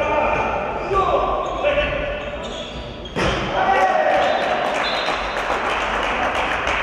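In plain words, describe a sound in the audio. Young men shout to each other in an echoing hall.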